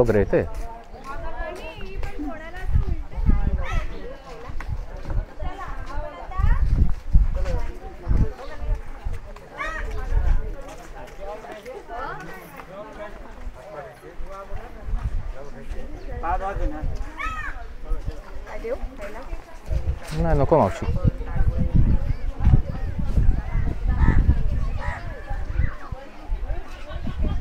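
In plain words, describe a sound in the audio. Footsteps scuff on a dirt path.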